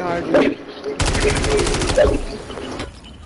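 Gunfire from a game rattles in a rapid burst.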